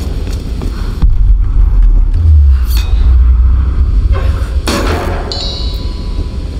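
A metal locker door is pried and creaks open.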